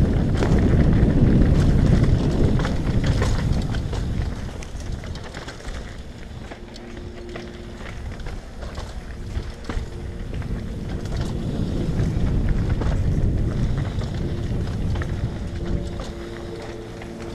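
Wind rushes loudly past a rider's helmet.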